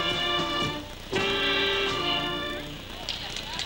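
A brass band plays a tune outdoors.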